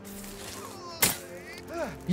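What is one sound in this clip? An arrow is loosed from a bow with a sharp snap.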